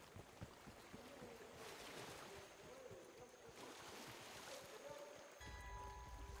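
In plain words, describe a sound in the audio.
A stream trickles over rocks.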